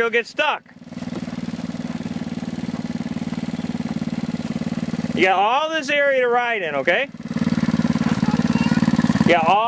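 A small quad bike engine buzzes steadily nearby.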